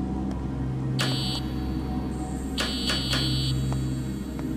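An electronic buzzer sounds sharply, twice.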